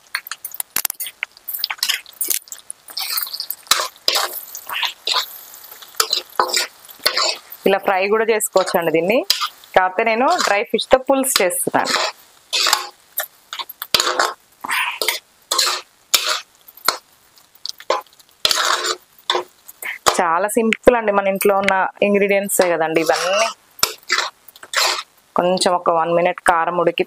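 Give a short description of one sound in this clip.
A metal spatula scrapes and clatters against a metal pan.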